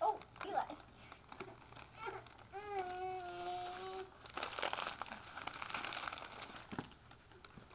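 Paper crinkles and tears as a gift is unwrapped.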